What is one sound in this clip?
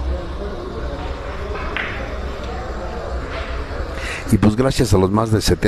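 Spectators murmur quietly in a large room.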